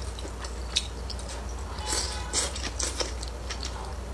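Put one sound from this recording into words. A young woman slurps food close to a microphone.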